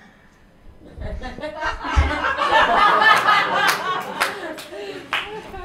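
An audience laughs loudly.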